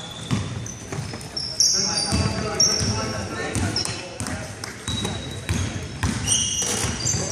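A basketball bounces on a hardwood court in a large echoing gym.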